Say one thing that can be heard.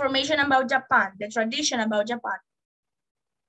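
A woman speaks with animation through an online call.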